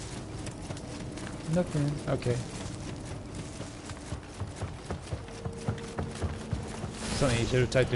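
Footsteps run quickly over wooden boards.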